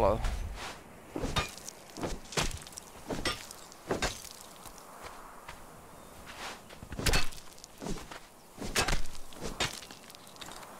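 A metal weapon strikes with sharp, repeated thuds.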